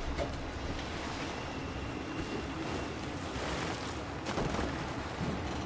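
Wind rushes loudly and steadily.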